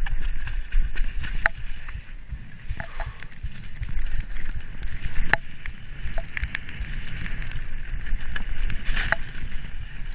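A bicycle's chain and frame rattle and clatter over bumps.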